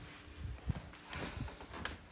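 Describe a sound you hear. A young boy speaks close by.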